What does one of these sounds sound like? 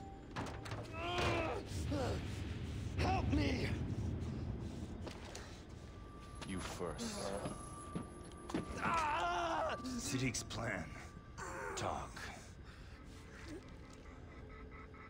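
A young man pleads tensely, close by.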